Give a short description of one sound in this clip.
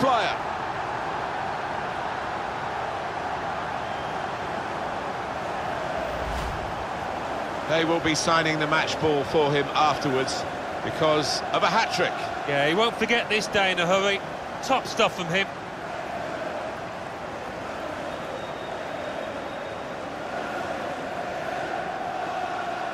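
A large crowd roars and cheers steadily in a big stadium.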